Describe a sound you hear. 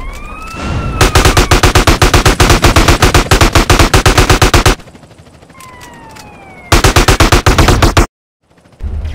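Rapid automatic gunfire rattles loudly in bursts.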